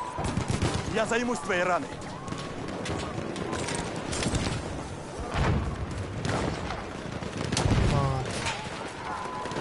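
A young man talks with animation into a microphone.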